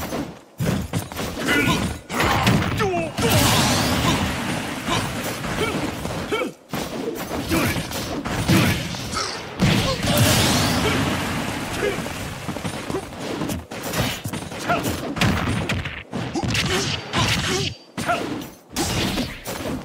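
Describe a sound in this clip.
Punches, kicks and blasts from a fighting video game thud and crackle in quick bursts.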